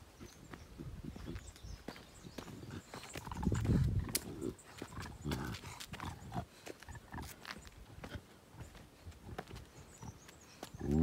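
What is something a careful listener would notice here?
Footsteps scuff and crunch on bare rock.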